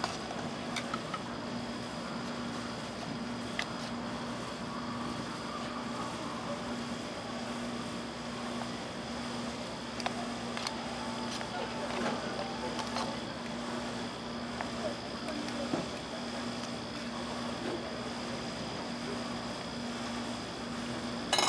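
Metal tongs tap and scrape as rolled ice cream is dropped into a paper cup.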